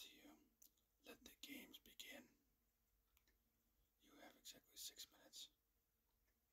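A man whispers close to a microphone.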